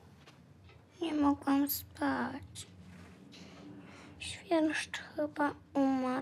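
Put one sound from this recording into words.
A young girl speaks quietly nearby.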